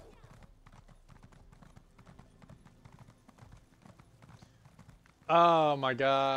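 Hooves clop quickly on stone.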